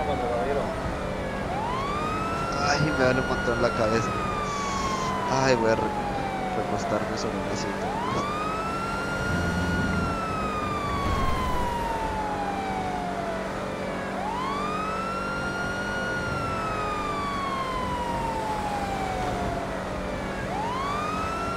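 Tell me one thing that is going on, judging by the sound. A police siren wails in long, slow rising and falling cycles.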